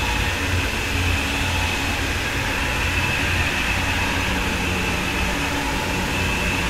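A high-speed train rushes past with a loud, steady roar.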